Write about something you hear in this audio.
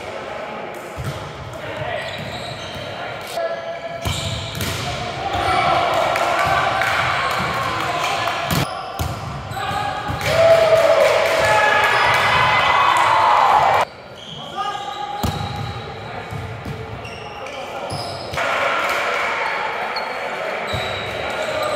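A volleyball thumps as players hit it.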